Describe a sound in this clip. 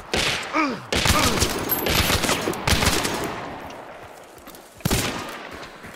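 A rifle fires loud shots that echo across open country.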